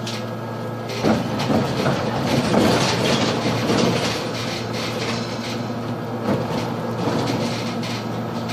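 The bus body rattles and creaks as it drives along.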